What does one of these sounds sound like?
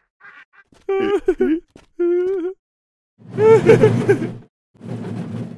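An elderly man and woman scream with delight close by.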